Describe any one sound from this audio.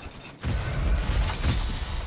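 A burst of flame whooshes.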